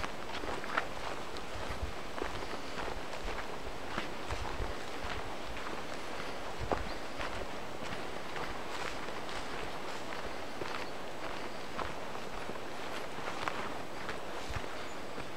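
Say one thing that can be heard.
Footsteps crunch and rustle through grass and leaves.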